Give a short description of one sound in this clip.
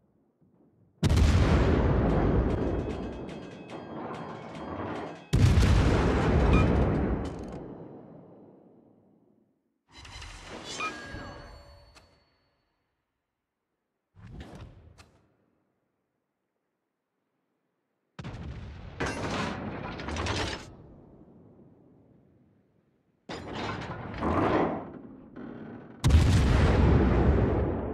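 Heavy naval guns fire in loud booming salvos that rumble and fade.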